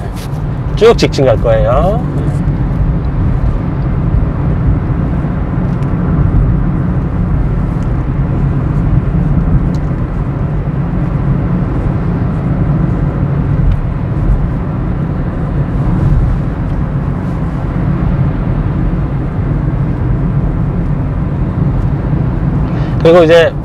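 A car engine and tyres hum steadily on the road from inside the car.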